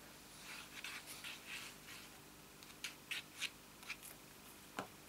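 A tool rubs and scrapes across paper in short strokes.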